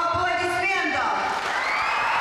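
A woman sings into a microphone, holding a final note.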